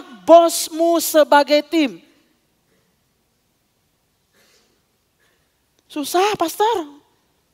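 A woman speaks with animation through a microphone, pausing between phrases.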